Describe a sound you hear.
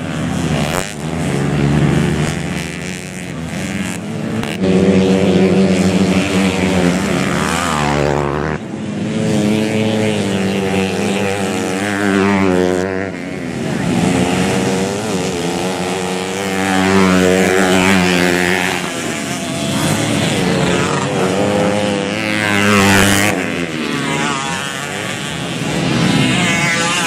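Dirt bike engines rev loudly, rising and falling in pitch as the bikes race past.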